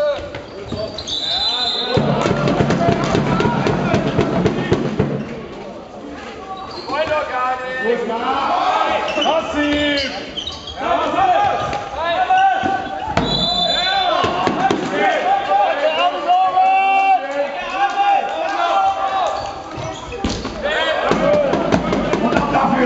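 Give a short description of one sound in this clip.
Male players shout to each other in a large echoing sports hall.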